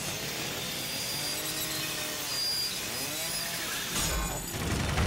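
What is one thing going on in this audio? A power tool grinds against metal with a harsh, whirring screech.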